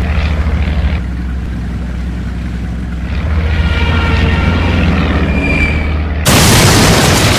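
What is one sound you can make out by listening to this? A boat engine chugs steadily.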